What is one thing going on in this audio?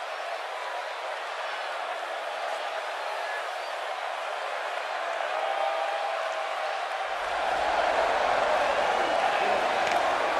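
A large crowd cheers and roars steadily, growing louder.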